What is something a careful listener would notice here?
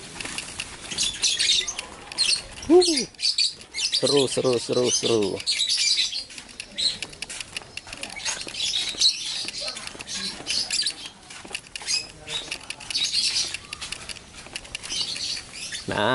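Small caged birds chirp and twitter close by.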